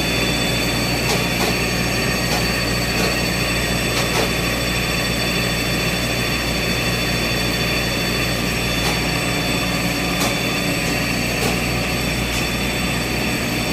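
An automatic slitting machine hums and whirs as a roll spins.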